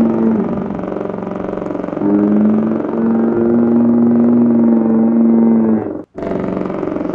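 A young man lets out a long, loud, sustained cry.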